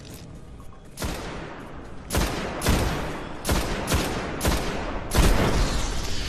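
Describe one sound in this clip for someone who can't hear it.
A scoped rifle fires single shots in a video game.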